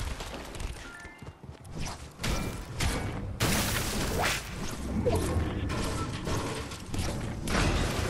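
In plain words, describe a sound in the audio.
Sharp blows crack and shatter in quick succession.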